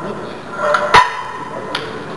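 A metal weight plate clanks against a barbell.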